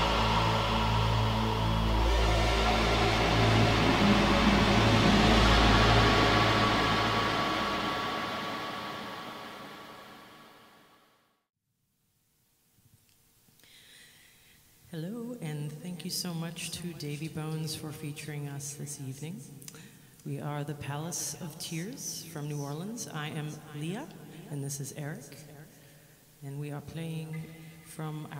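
A woman sings into a microphone over loud amplified music.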